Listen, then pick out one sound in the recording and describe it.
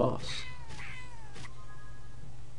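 A cartoon creature's ram hits with a crash and falling whistles.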